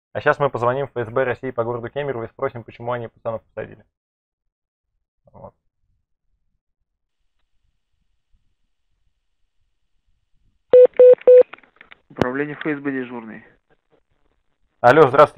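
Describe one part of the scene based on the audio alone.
A young man talks calmly and closely into a microphone.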